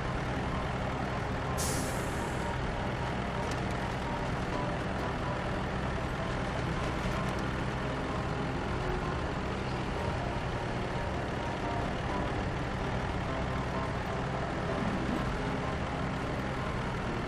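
Truck tyres crunch over snow and rocks.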